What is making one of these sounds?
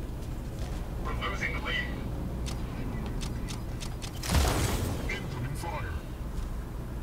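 An adult man speaks into a headset microphone.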